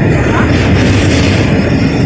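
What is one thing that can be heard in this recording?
A heavy truck rumbles past close by.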